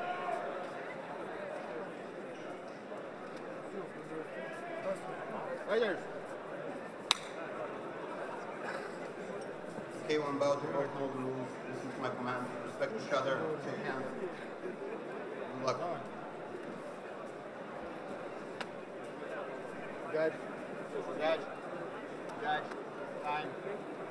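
A seated crowd murmurs in a large hall.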